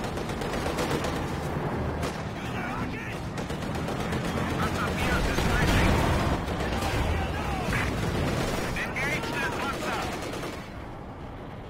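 Explosions boom and rumble in a battle.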